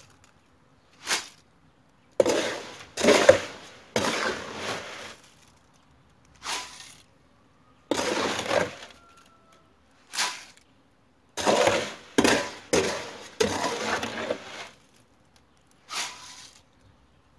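Gravel pours onto the ground in short rushes.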